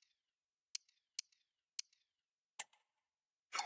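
Short menu clicks sound as selections change.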